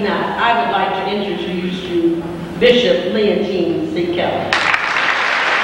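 A woman speaks into a microphone, heard over loudspeakers in a large hall.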